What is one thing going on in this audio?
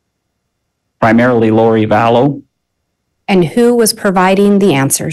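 A man speaks calmly through a microphone over an online call.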